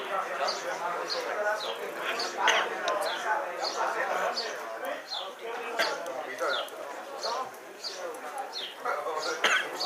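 Several men chat close by, outdoors.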